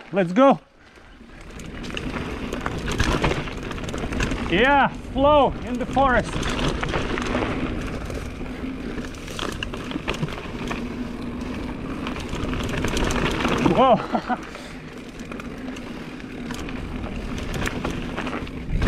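A bicycle's frame rattles over bumps.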